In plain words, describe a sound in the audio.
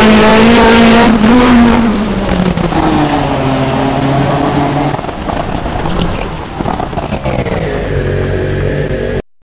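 A rally car engine revs loudly, rising and falling as the gears change.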